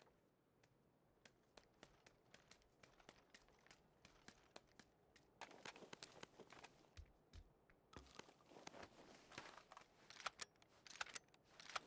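Footsteps thud on wooden floorboards and stairs indoors.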